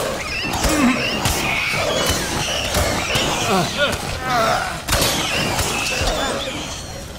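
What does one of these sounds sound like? A creature shrieks and squeals.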